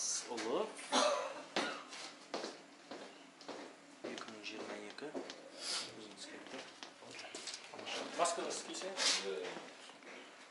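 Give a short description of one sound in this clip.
A man talks nearby in a calm, conversational voice.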